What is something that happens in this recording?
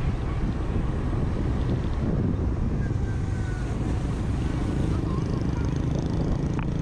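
Wind rushes past a moving rider outdoors.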